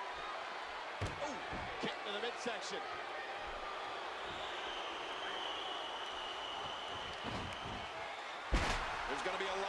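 A heavy body slams down onto a wrestling ring with a loud thud.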